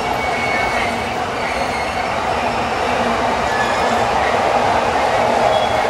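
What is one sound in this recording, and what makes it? A train rolls into the station.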